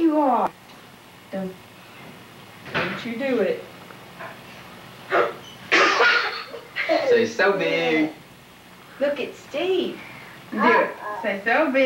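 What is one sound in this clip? A toddler babbles and squeals excitedly close by.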